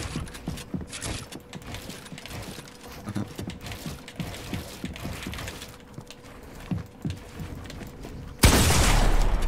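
Wooden building pieces snap into place with quick, repeated knocks.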